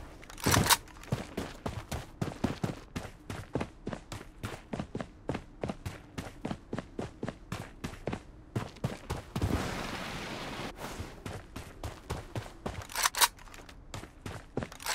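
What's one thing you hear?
Footsteps patter quickly on dry ground.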